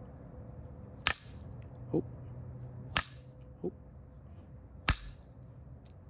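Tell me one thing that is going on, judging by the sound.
An antler tool strikes a stone with sharp knocks.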